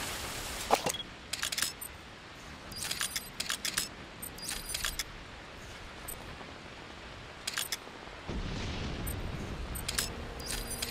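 Short electronic beeps and clicks chirp in quick bursts.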